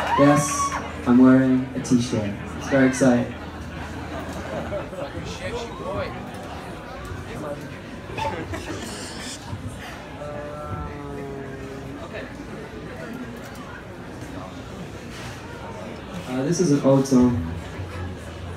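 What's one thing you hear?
A young man speaks loudly into a microphone through loudspeakers.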